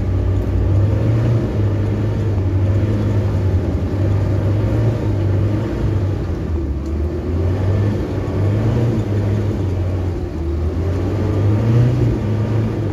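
Tyres crunch over a rough dirt track.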